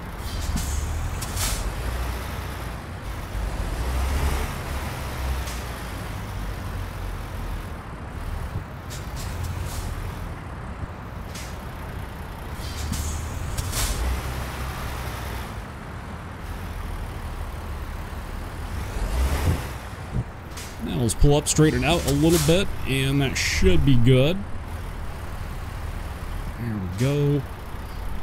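A truck engine rumbles low and steady as the truck reverses.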